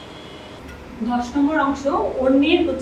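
A woman speaks clearly and steadily, as if teaching.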